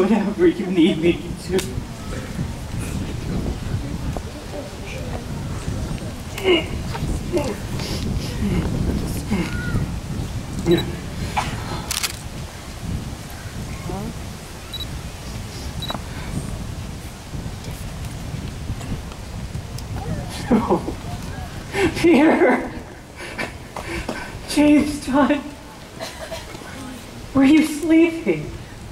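A large crowd of adults and children murmurs and chatters outdoors.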